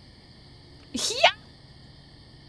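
A man lets out a sudden shrill scream.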